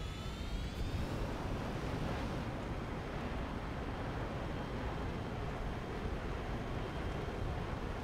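A jet fighter's engine roars on afterburner.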